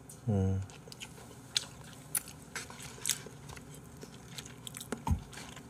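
A man slurps and chews noodles close to a microphone.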